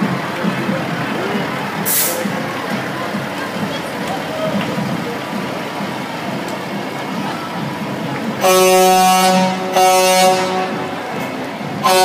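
A crowd of people chatters along a street outdoors.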